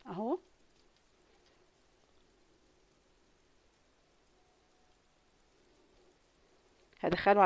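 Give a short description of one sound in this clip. Yarn rustles softly as it is pulled through crocheted stitches.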